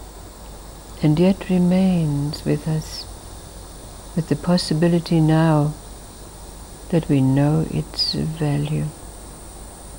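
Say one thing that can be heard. An elderly woman speaks calmly and close to a microphone, in short phrases with pauses.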